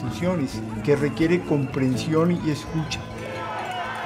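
A large crowd cheers and chants loudly outdoors.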